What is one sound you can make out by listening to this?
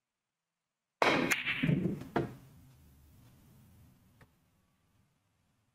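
Billiard balls roll across the cloth with a soft rumble.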